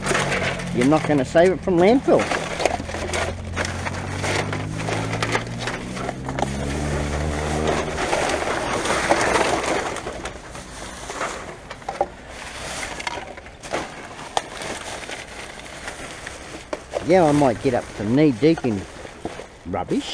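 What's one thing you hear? Plastic bags and wrappers rustle and crinkle close by.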